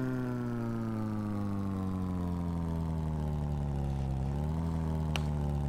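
A car engine hums steadily, its pitch slowly dropping and then rising a little.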